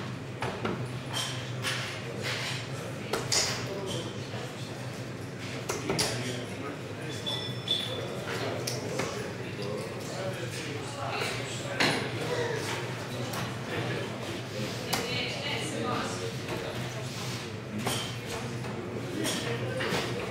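Darts thud into a dartboard.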